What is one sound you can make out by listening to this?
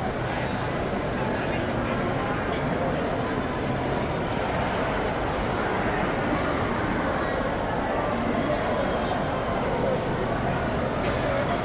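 A crowd murmurs and chatters in a large echoing indoor space.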